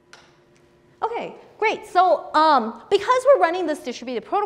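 A young woman speaks with animation through a microphone.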